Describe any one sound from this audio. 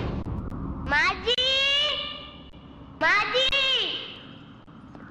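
A young boy calls out loudly in a high voice.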